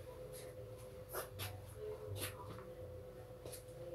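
Footsteps thud on a floor close by.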